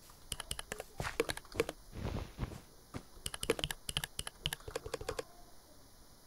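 Game blocks are placed with quick, soft tapping clicks.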